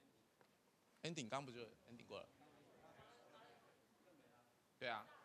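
A young man speaks clearly into a microphone.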